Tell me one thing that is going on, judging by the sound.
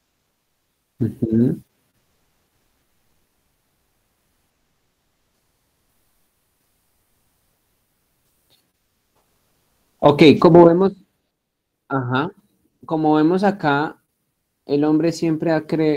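A young man speaks over an online call in short bursts.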